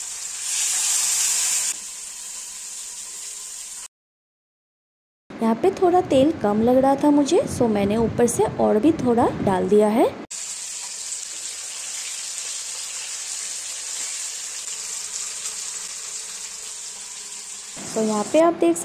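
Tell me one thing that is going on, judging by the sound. Fish sizzles and crackles in hot oil.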